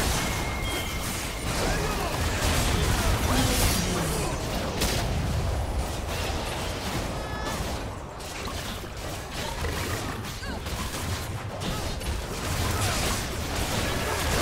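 Magic spells crackle and boom in a fast fight.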